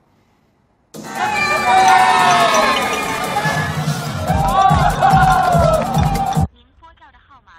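A group of young people cheer and shout loudly.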